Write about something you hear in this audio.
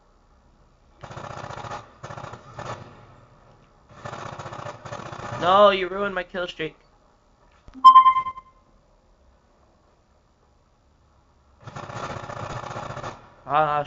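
Automatic gunfire from a video game sounds through a television speaker.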